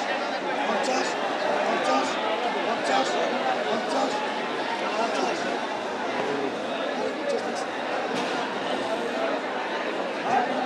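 A crowd of men chatter loudly all around, close by.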